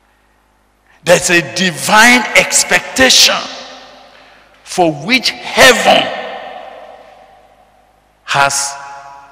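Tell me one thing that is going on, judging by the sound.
A man preaches with animation into a microphone, his voice ringing in an echoing hall.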